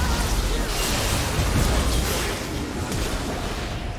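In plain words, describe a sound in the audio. Game spell effects crackle and blast during a fight.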